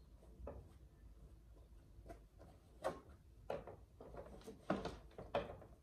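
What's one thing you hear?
Objects knock and rustle close by as they are handled.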